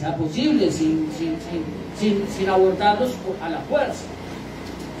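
A man speaks through a microphone over loudspeakers.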